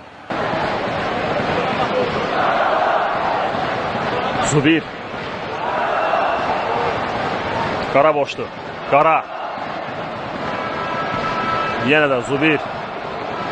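A stadium crowd murmurs and chants steadily in a large open space.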